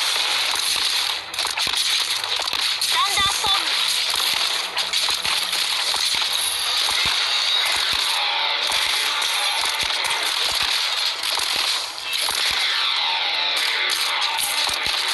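Game combat effects clash and burst with quick hits and blasts.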